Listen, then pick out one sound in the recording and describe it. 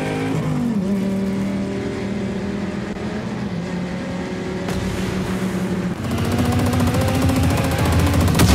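A vehicle engine roars steadily at speed.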